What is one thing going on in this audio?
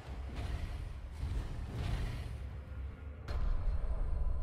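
Heavy blows strike with deep, booming impacts.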